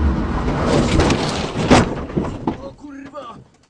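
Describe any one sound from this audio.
A rally car crashes loudly through bushes and trees.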